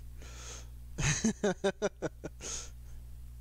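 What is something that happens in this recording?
A young man laughs loudly in bursts close to a microphone.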